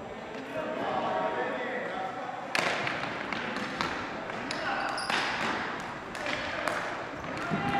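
Men shout and call out to each other across the echoing hall.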